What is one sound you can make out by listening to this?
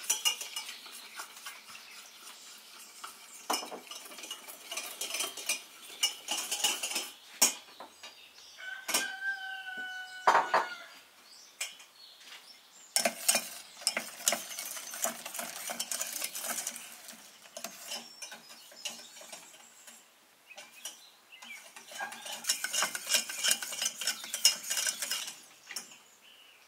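A wire whisk clinks and scrapes rapidly against a metal pan.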